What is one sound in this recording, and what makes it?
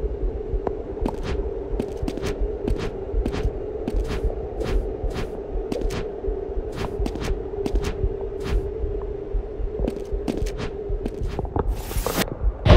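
Light footsteps tap in a quick rhythm.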